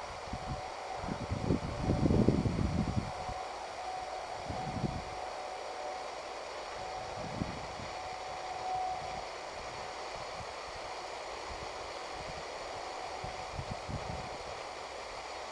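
Wind gusts rumble outdoors in short bursts.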